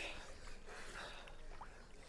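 A young man talks quietly and laughs.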